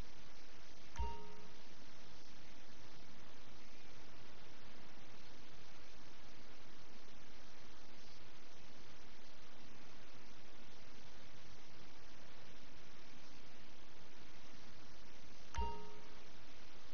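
A short electronic chime sounds twice.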